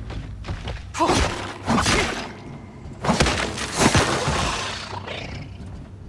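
A blade slashes and strikes a creature with heavy thuds.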